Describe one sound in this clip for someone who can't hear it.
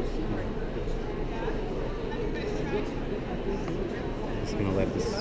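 Many people chatter in the background of a busy hall.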